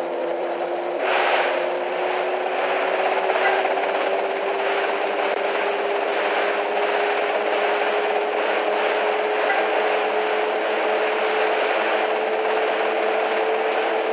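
Water sprays and hisses behind a speeding boat.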